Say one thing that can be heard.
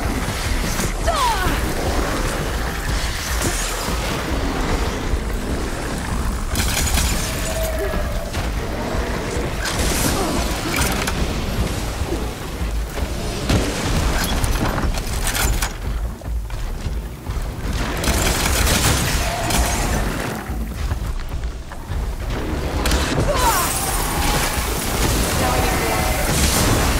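Explosions burst with loud crackling blasts.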